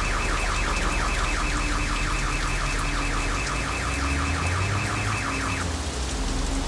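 Tyres screech on pavement as a car drifts.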